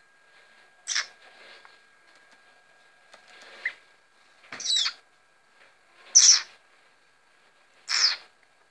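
A blackbird gives sharp, shrill calls close by, a few seconds apart.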